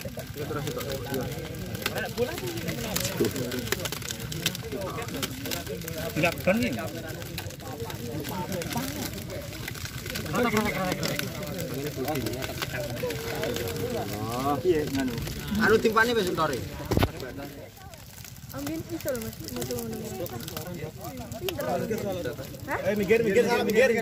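Several young men talk and shout with excitement close by, outdoors.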